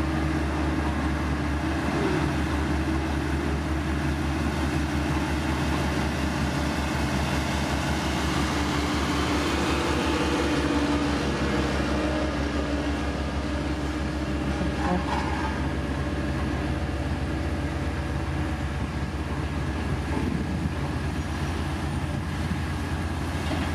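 Gravel scrapes and crunches under a blade.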